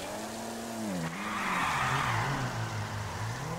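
Car tyres screech briefly on the road.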